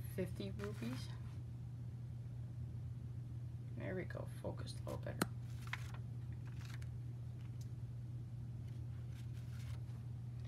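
A banknote rustles softly as fingers press and flip it.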